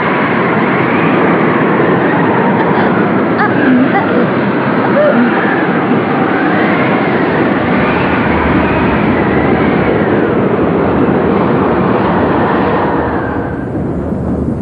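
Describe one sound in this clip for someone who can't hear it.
Stormy wind howls and roars loudly.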